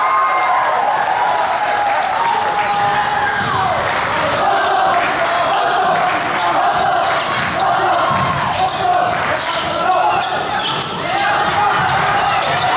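Spectators chatter and cheer in an echoing hall.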